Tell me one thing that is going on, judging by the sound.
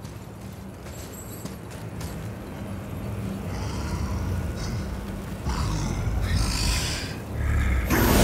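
Wind howls steadily.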